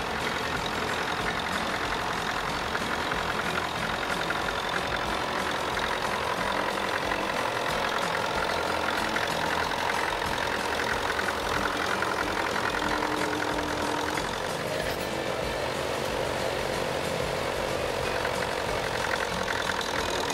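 An old tractor engine chugs steadily nearby.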